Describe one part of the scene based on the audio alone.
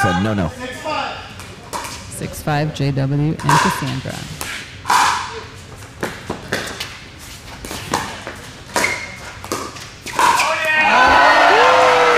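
Paddles smack a plastic ball back and forth with sharp pops.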